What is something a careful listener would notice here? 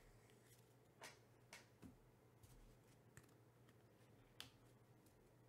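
Fingers softly tap and rustle a card.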